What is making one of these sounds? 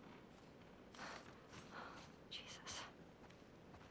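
A young woman mutters softly under her breath.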